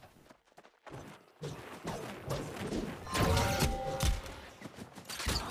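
Weapon blows and magic spells hit with sharp impacts.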